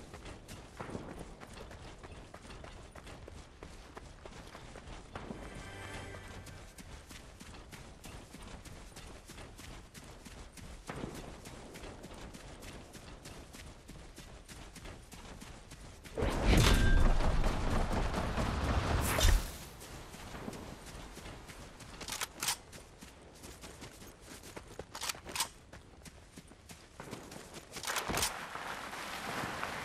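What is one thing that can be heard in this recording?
Quick footsteps patter over dirt and grass.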